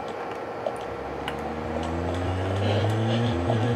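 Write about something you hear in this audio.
A car engine starts and revs up.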